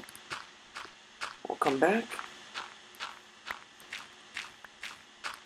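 Sand crunches in short, quick bursts as a shovel digs, block after block.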